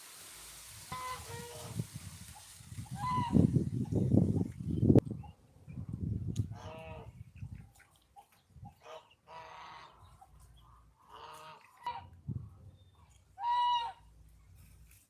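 Goslings peep and call.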